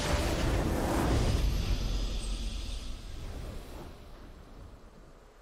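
A triumphant game victory fanfare booms and slowly fades away.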